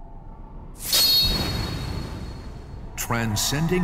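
A sudden whooshing burst sounds out.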